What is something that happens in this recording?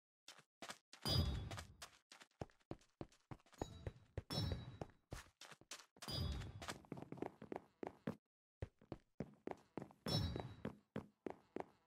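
Coins chime as they are picked up.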